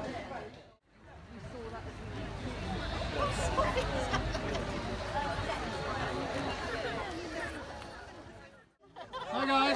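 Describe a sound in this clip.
A crowd of people murmur outdoors.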